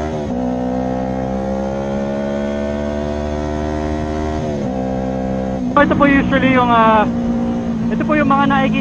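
A motorcycle engine hums steadily, then revs up sharply through the gears.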